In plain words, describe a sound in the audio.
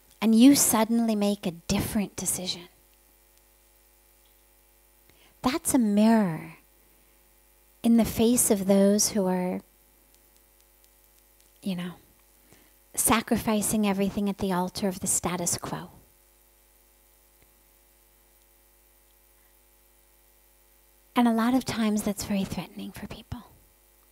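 A woman speaks calmly into a microphone, with pauses between phrases.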